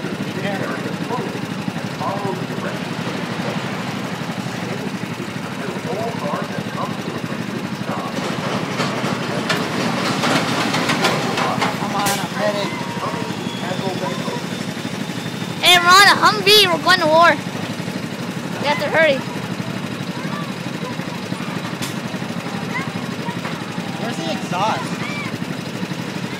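A small kart engine hums steadily close by.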